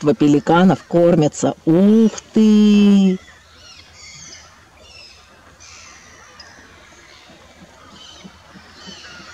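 Water laps gently against rocks at the shore.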